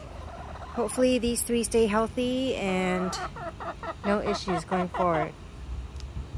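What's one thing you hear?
Hens cluck and murmur close by.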